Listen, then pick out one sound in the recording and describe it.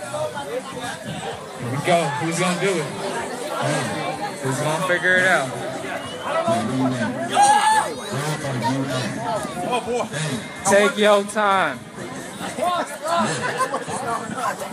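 Young men laugh loudly close by.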